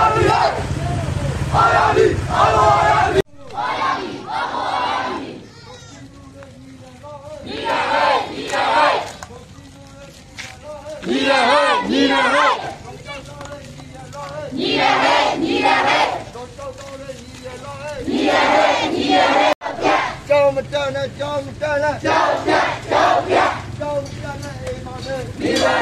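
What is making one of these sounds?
A crowd of men and women chant slogans loudly outdoors in bursts.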